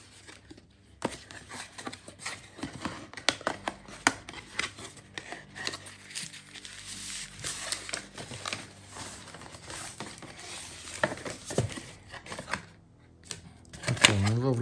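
Cardboard packaging rustles and scrapes as a box is opened by hand.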